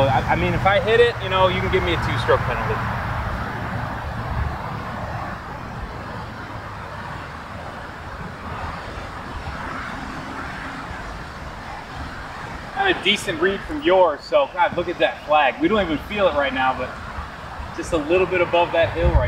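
A man talks calmly outdoors in wind.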